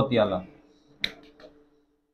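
A carrom striker clicks sharply against a piece on the board.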